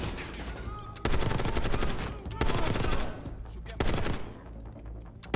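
A rifle fires loud bursts of shots that echo in a tight space.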